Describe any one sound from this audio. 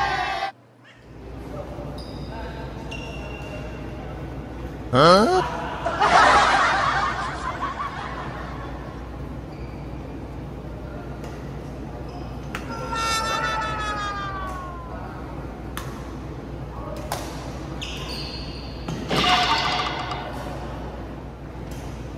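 Shuttlecocks are struck sharply by rackets in a large echoing hall.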